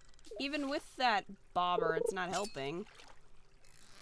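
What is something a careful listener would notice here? A short game chime rings as a fish bites.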